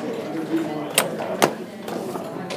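Game pieces clack against a wooden board.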